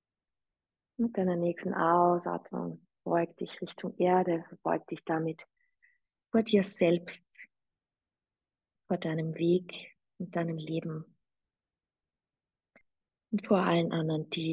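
A woman speaks calmly and slowly through a microphone.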